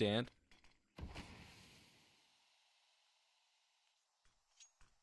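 A smoke grenade bursts with a sharp pop and hisses, slowly fading.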